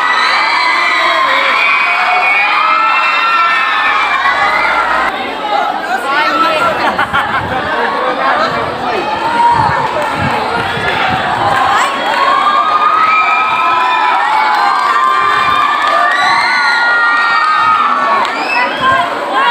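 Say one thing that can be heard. Young women chatter and laugh close by.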